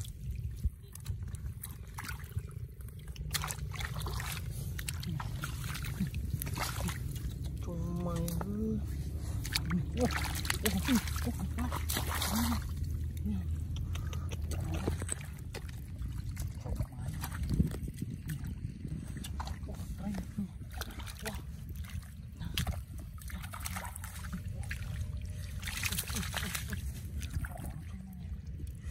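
Hands splash and squelch through shallow muddy water.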